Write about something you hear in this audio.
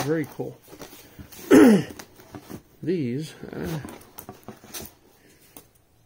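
Plastic wrap and cardboard rustle and crinkle as hands handle them.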